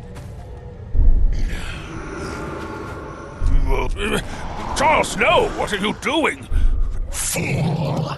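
A magical blast booms with a deep thud, again and again.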